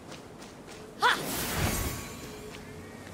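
A bright magical chime rings out and swells into a rushing whoosh.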